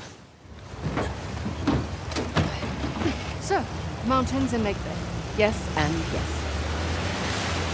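Water rushes and splashes loudly.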